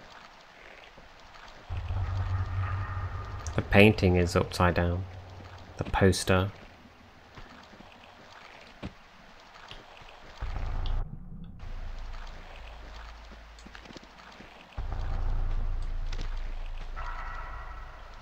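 Footsteps run across a stone floor.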